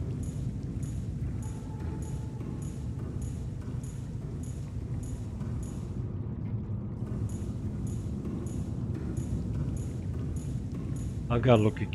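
Footsteps tap quickly and evenly on a hard metal floor.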